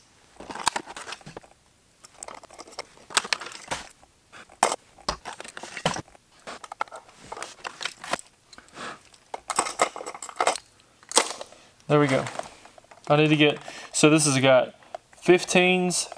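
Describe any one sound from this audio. Plastic lures and boxes click and rattle as they are handled.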